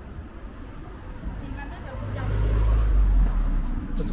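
People walk by with footsteps on pavement.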